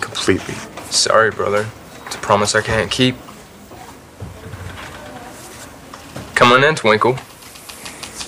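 A young man speaks calmly and closely.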